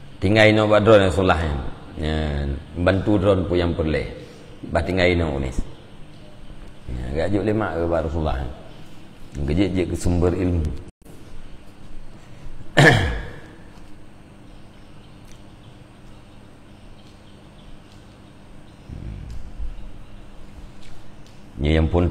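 An elderly man speaks calmly and with emphasis into a close microphone.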